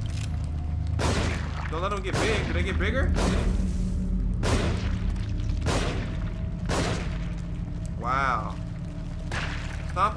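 Gunshots fire loudly at intervals.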